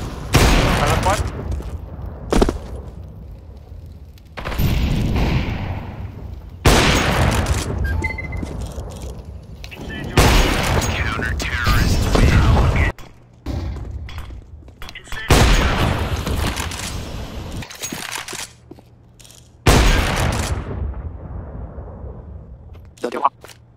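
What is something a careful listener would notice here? A sniper rifle fires loud, booming shots that echo and fade.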